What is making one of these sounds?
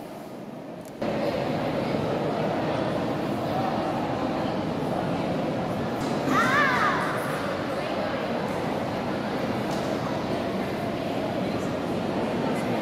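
A crowd of visitors murmurs and chatters in a large echoing hall.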